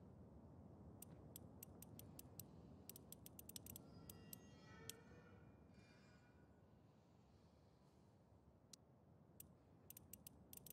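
A combination dial clicks as it turns.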